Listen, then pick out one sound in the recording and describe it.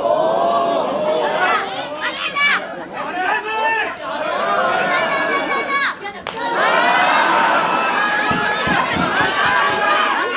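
A large crowd shouts and cheers loudly in an echoing hall.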